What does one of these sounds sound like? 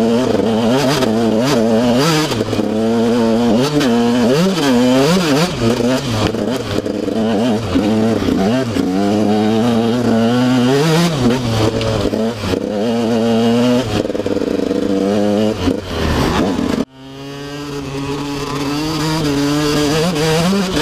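Knobby tyres churn over muddy ground.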